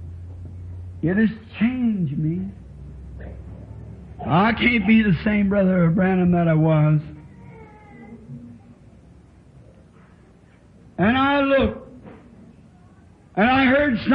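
A man preaches with fervour through a microphone.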